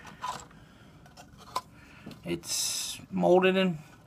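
Plastic model parts rattle and click as they are handled.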